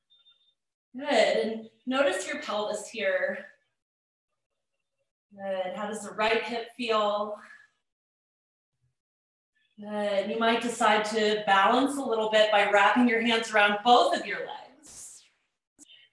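A woman speaks calmly through a microphone, in short spells with pauses.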